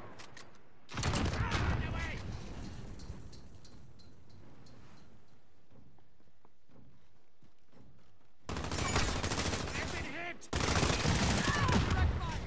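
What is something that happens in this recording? Flames roar and crackle from an explosion.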